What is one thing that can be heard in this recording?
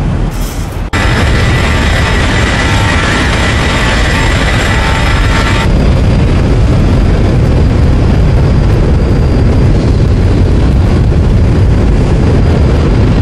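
A jet airliner roars loudly as it flies past.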